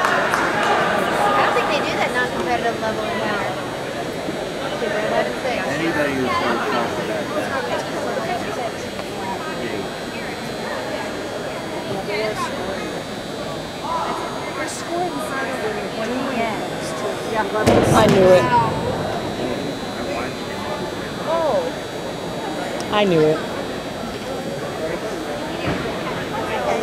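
Many voices chatter and call out across a large echoing hall.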